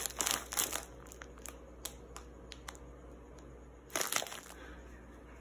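A plastic snack bag crinkles and rustles close by.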